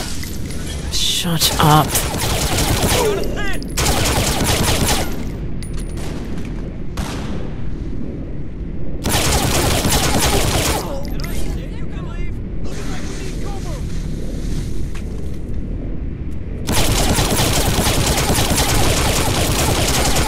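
Automatic gunfire rattles in rapid bursts.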